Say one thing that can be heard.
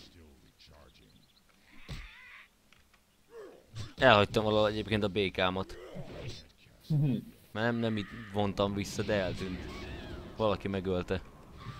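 An axe strikes a creature in a fight, with thuds and clangs.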